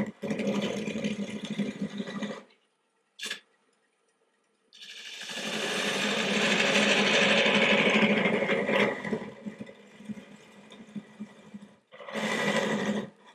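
A tool scrapes and grinds against wood spinning on a lathe.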